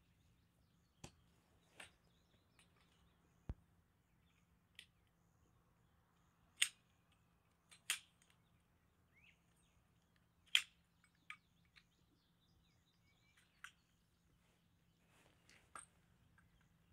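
Tent poles click and clatter as they are fitted together.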